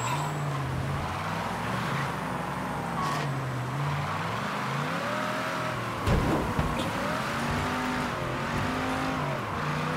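Car tyres skid and thump over rough ground.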